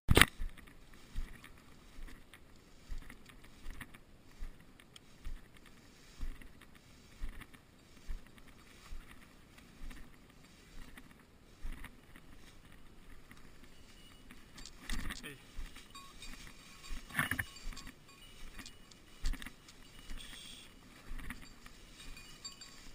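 Footsteps crunch and swish through tall dry grass.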